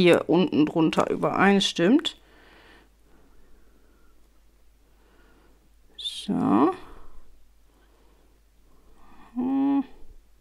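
Paper rustles softly as hands press and smooth a card.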